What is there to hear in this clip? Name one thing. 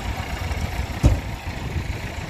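A car door bangs once.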